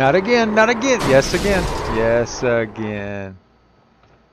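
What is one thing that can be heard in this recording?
A racing car crashes and scrapes against a wall.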